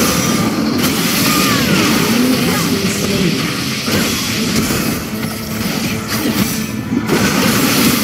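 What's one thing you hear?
Game characters clash in combat with hits and bursts.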